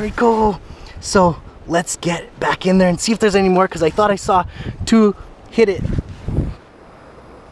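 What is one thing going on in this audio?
A man talks with animation close to the microphone.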